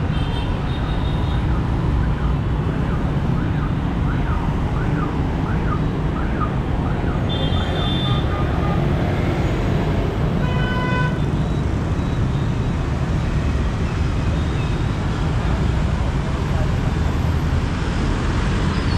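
Motorbikes and cars drive past on a busy street with a steady rumble.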